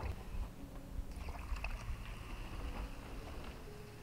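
Water trickles from a jerry can into a bowl.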